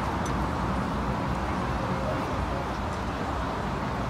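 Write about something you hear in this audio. Horse-drawn carriages rumble past along a busy street.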